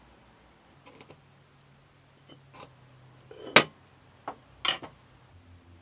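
A metal square and a wooden piece knock against a workbench.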